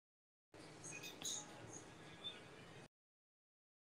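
A man's voice comes faintly through an online call.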